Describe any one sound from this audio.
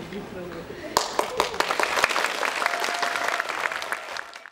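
Dancers' feet thump and tap on a wooden stage.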